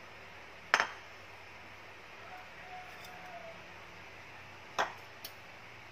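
A fork taps against a plate.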